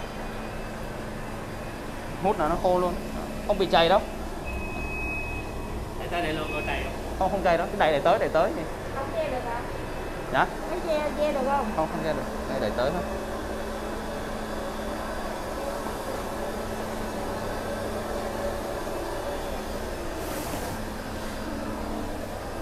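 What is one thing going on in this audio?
A floor scrubbing machine hums steadily.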